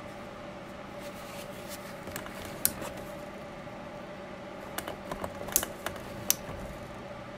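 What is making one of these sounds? A wooden stick scrapes and taps against a glass jar.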